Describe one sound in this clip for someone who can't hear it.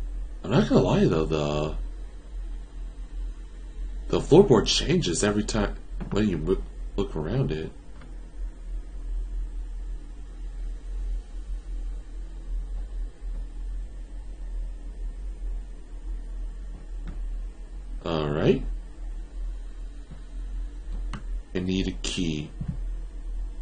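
A young man talks into a close microphone in short, animated bursts.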